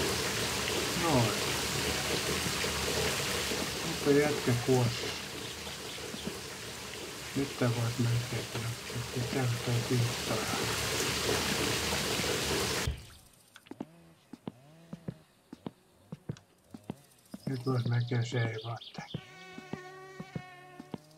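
A middle-aged man talks calmly into a microphone.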